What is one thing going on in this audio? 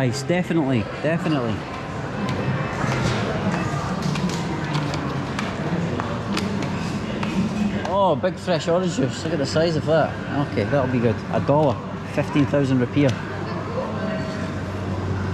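Shoppers murmur in a large, echoing indoor space.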